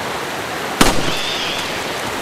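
A pistol fires a single sharp shot.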